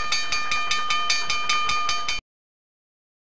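A hand bell rings rapidly.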